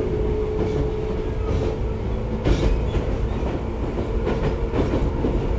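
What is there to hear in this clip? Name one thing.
A train rumbles along the tracks nearby.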